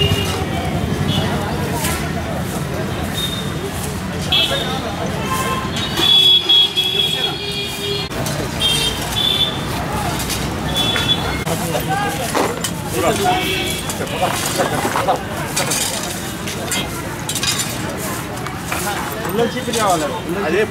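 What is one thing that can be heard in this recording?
Brooms sweep and scrape over dry dirt and leaves.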